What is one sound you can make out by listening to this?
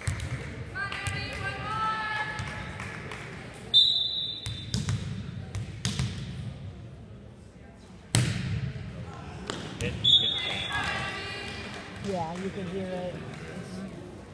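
Young girls shout and cheer in an echoing hall.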